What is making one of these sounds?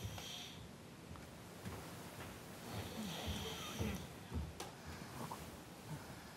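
Bedding rustles softly as someone shifts under a duvet.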